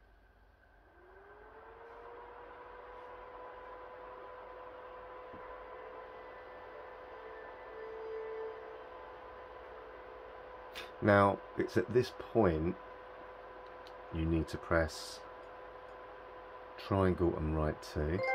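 A games console plays a soft, steady startup hum that swells and holds.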